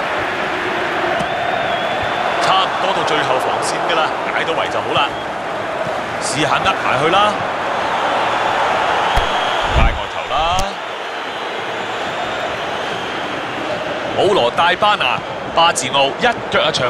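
A stadium crowd murmurs and cheers.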